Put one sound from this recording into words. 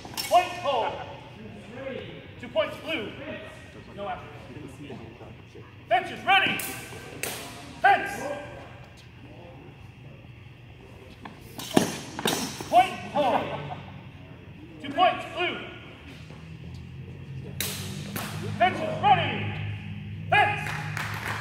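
Wooden swords clack together in quick bursts.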